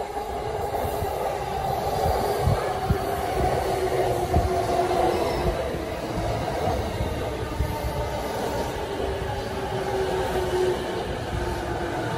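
An electric commuter train pulls slowly out, its motors whining.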